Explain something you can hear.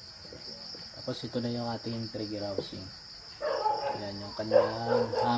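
A man speaks close by, calmly.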